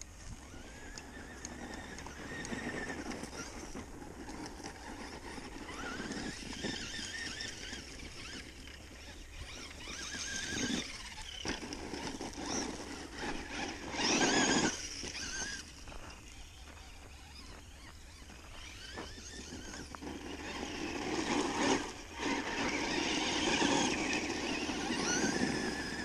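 Wind rushes and buffets steadily outdoors.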